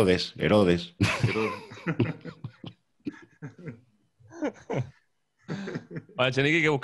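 A middle-aged man laughs and talks into a microphone.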